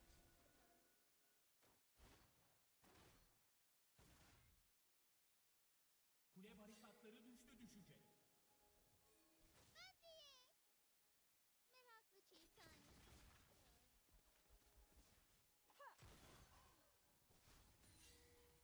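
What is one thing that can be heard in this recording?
Game spell effects whoosh and chime with electronic sounds.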